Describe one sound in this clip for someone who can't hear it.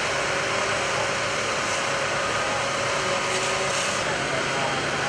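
A fire engine's pump engine runs with a steady hum.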